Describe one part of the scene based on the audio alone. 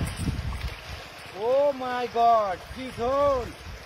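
Water splashes underfoot in a shallow stream.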